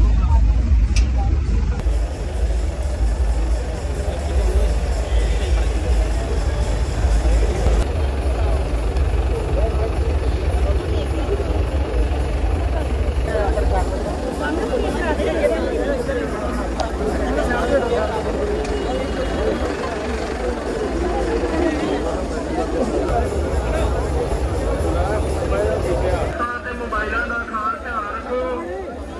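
A large crowd of men chatters and calls out loudly all around, outdoors.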